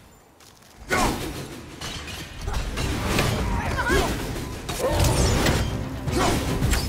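Icy magic crackles and bursts loudly.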